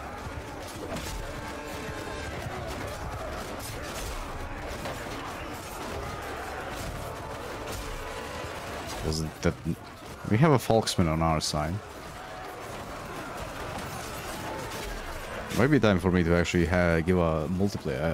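Weapons clash and clatter in a crowded battle.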